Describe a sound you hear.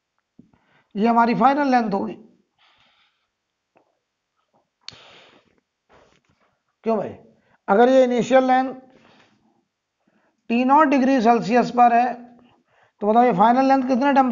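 A man lectures calmly, speaking in short phrases with pauses.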